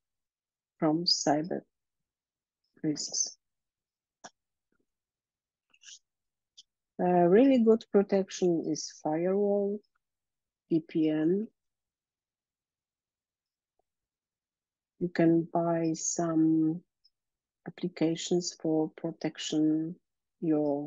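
A woman speaks calmly into a microphone, heard through an online call, with short pauses.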